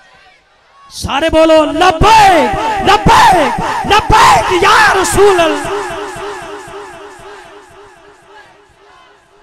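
A crowd of men chants loudly together, then fades.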